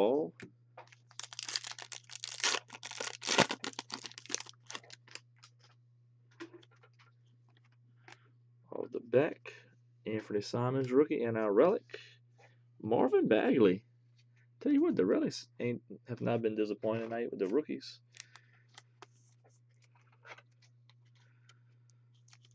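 Plastic crinkles and rustles close by.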